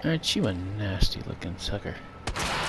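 A pistol fires sharp shots.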